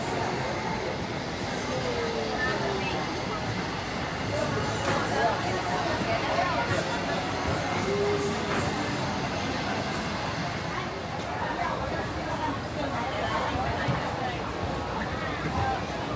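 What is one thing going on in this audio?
A crowd chatters nearby in a busy, echoing space.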